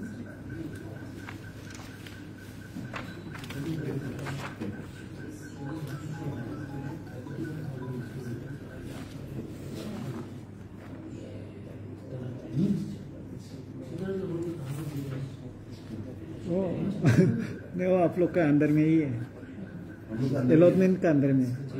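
Paper sheets rustle and flap as they are handled.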